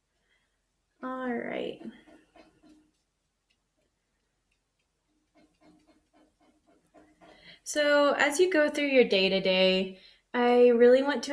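A woman talks calmly and close by, with pauses.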